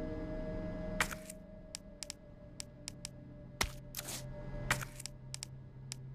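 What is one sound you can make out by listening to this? Short menu clicks and blips sound several times.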